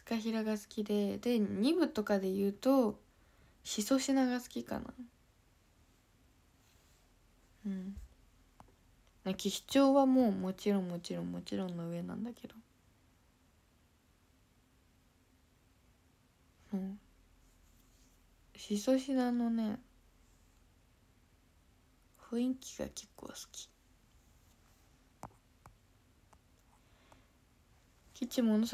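A young woman talks casually and close to a microphone, in short bursts with pauses.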